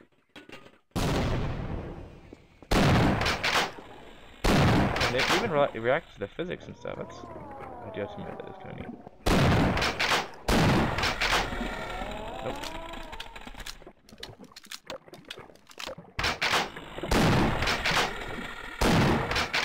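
A shotgun fires loud, booming blasts.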